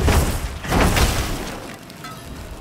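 Flames burst and roar loudly, then die down.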